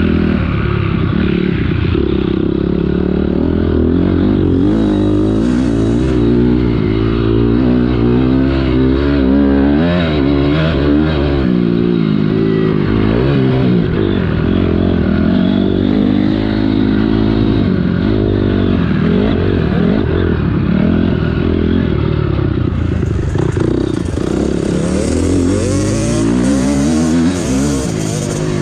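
A dirt bike engine roars close by, revving up and down as it rides.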